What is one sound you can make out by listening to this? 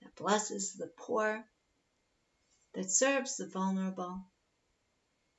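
A woman speaks calmly into a microphone, heard as if over an online call.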